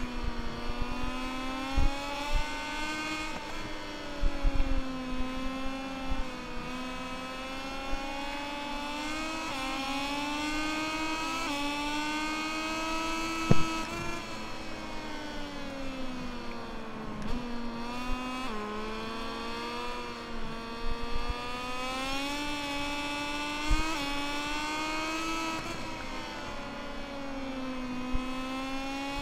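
A motorcycle engine whines steadily, rising and falling in pitch as it speeds up and shifts gears.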